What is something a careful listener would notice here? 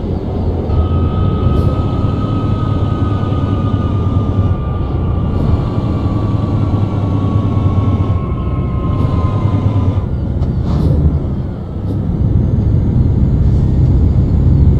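A truck engine rumbles steadily while driving.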